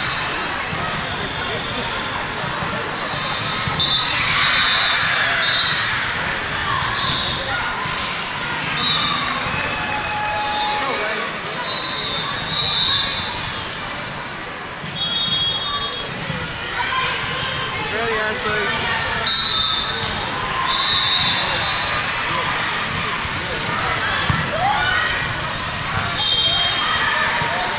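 A crowd murmurs and cheers throughout a large echoing hall.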